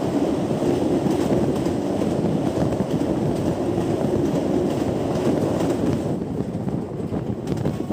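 A train rumbles and clatters loudly along the tracks at close range.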